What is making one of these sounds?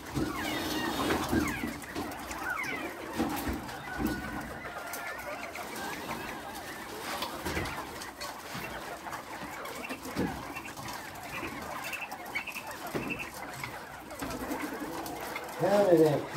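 Caged birds chirp and cluck throughout.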